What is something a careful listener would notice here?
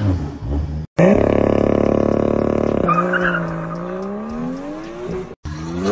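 A car exhaust roars loudly and then crackles while accelerating away.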